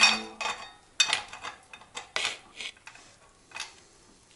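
A metal chain rattles and clinks close by.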